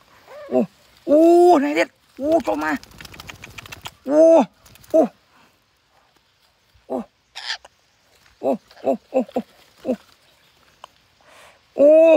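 Parrots squawk loudly close by, over and over.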